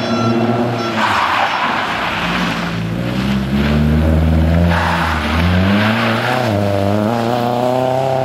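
Tyres hiss and spray over wet gravel.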